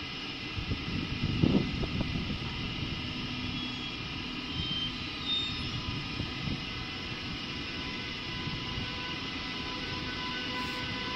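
An electric train rumbles slowly into an echoing station.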